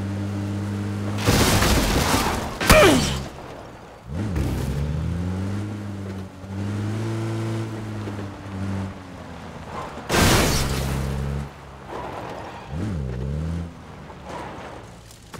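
A jeep engine hums and revs up and down.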